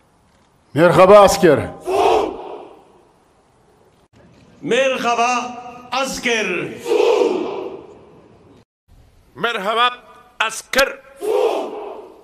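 A large group of men shout together in unison, with the shouts echoing across an open space.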